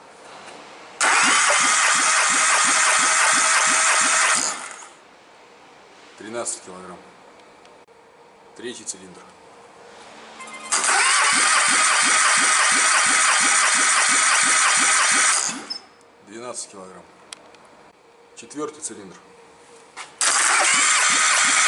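An engine cranks over with a fast, rhythmic chugging.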